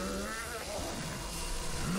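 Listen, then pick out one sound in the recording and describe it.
Electricity crackles and buzzes sharply.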